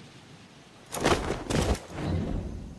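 Boots thud onto a metal roof on landing.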